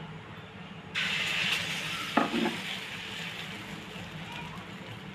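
Batter sizzles as it spreads on a hot griddle.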